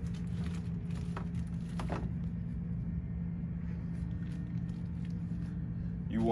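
Comic books in plastic sleeves rustle as a man flips through them.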